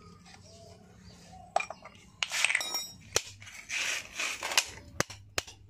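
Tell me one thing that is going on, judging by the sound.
Metal parts clink as a wrench is worked on an engine part.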